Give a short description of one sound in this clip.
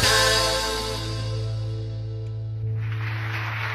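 A band plays guitars on a stage and finishes a song.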